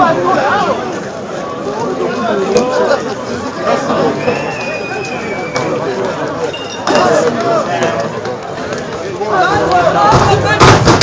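A crowd of men shout and talk excitedly nearby, outdoors.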